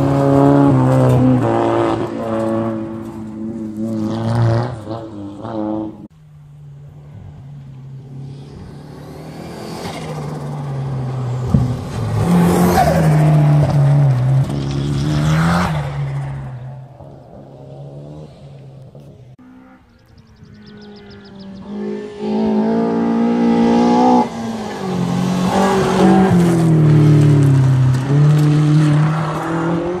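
A rally car engine roars and revs hard as cars speed past one after another.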